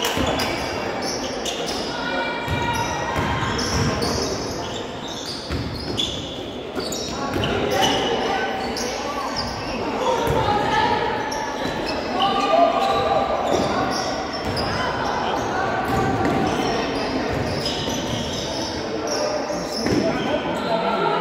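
Sneakers squeak sharply on a hard floor in a large echoing gym.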